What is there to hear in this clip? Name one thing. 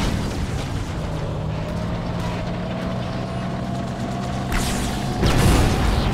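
Flames roar and crackle from an explosion.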